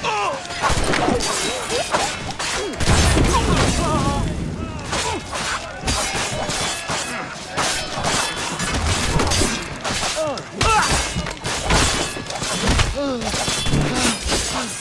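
Men shout and grunt as they fight.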